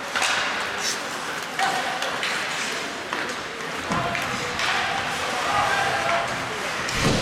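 Skate blades scrape and hiss across ice in a large echoing arena.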